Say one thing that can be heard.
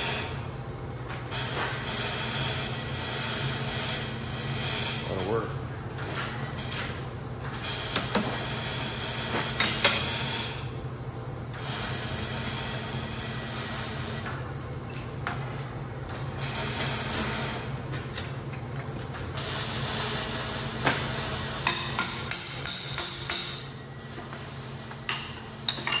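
Metal parts clank and click on a pipe bender.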